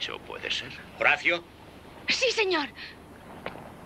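A young boy speaks excitedly, close by.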